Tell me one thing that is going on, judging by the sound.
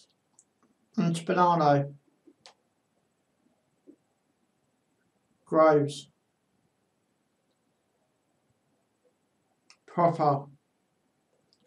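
A young man speaks briefly and calmly into a close microphone, in short bursts with pauses.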